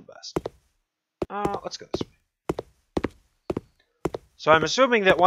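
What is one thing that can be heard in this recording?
Footsteps thud slowly and evenly on a hard floor.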